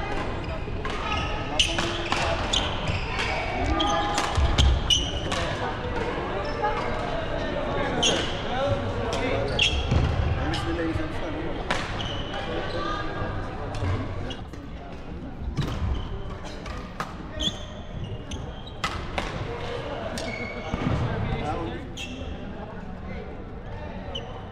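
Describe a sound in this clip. Many people talk and call out in a large echoing hall.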